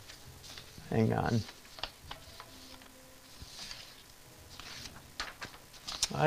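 A brush softly strokes across paper.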